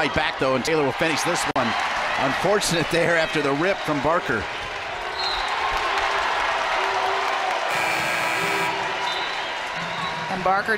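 A crowd cheers and murmurs in a large echoing arena.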